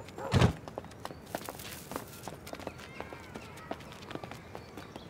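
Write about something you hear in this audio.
Footsteps crunch on dry leaves and gravel.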